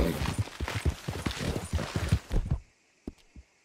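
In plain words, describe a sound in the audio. A horse gallops, hooves pounding.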